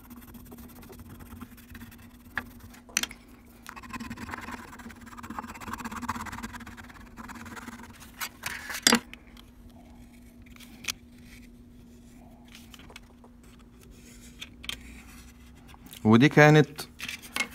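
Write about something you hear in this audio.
A pointed tool scrapes and rubs softly on thin metal foil.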